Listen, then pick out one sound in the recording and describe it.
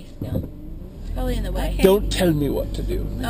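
A car engine hums low and steady from inside.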